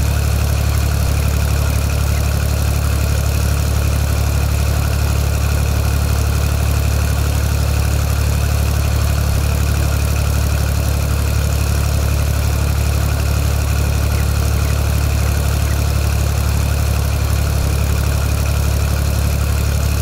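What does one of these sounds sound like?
A small tractor engine chugs steadily.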